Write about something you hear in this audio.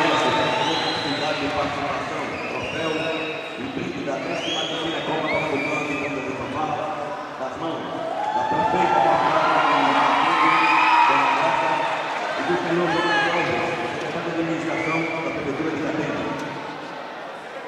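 A brass band plays loudly in a large echoing hall.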